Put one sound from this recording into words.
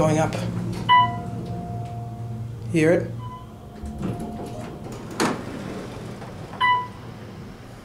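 An elevator chime dings several times.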